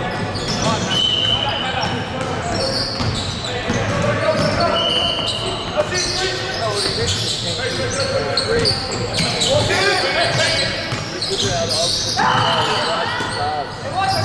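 A basketball bounces on the court with dull thuds.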